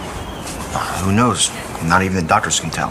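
A young man answers sharply.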